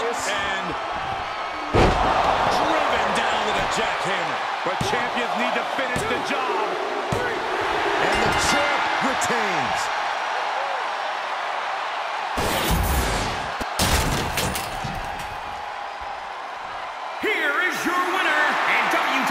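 A large crowd cheers loudly in an arena.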